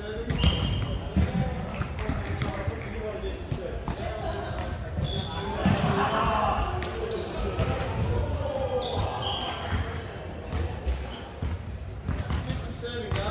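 Young men talk and call out to each other across a large echoing hall.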